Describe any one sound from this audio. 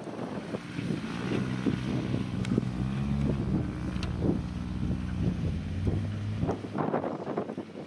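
A small car engine idles and revs as the car climbs a slope.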